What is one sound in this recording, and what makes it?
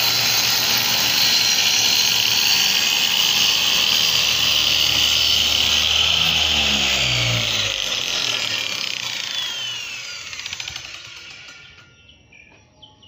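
A circular saw whines loudly as it cuts through wood, then winds down.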